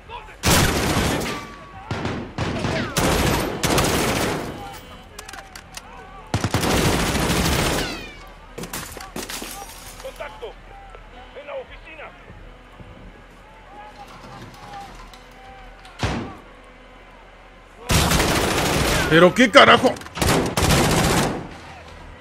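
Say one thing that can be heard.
Rifle shots ring out in loud, rapid bursts, indoors with echo.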